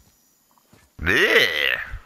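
A large beast roars loudly.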